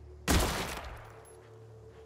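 A pistol fires a single loud shot that rings out briefly.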